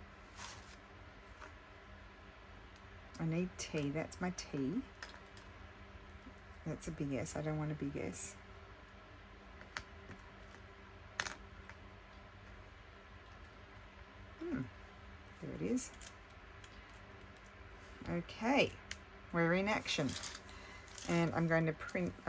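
Paper rustles softly as small pieces are handled.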